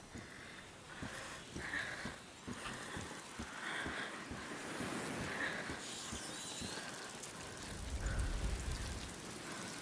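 Footsteps scrape and shuffle over stone and wooden planks.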